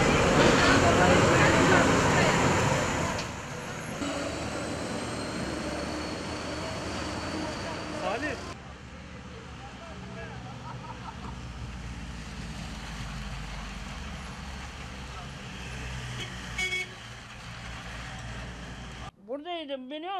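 Street traffic hums outdoors.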